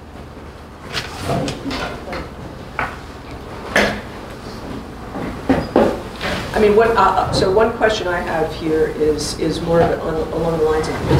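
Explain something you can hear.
A man speaks to an audience through a microphone in a large room.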